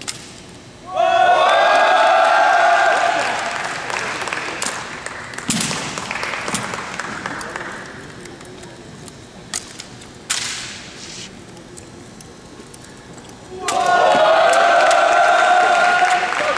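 A young man shouts drill commands loudly in a large echoing hall.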